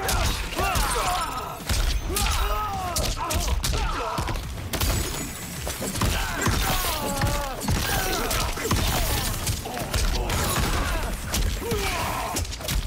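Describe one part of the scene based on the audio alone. Punches and kicks land with heavy, quick thuds.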